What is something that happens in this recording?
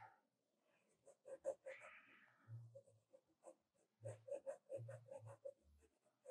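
A pencil scratches in short strokes on paper.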